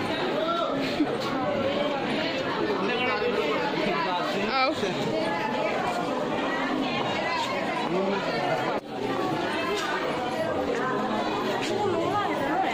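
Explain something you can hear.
Several men and women talk over each other nearby.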